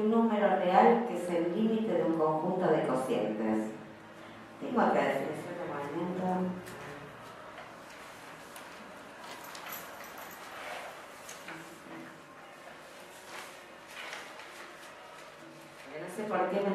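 A woman speaks calmly into a microphone, heard through a loudspeaker in a large room.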